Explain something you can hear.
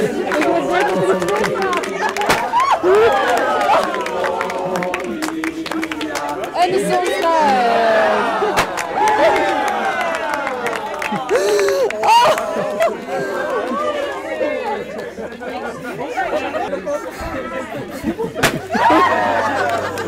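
A crowd of men and women chatter and cheer nearby.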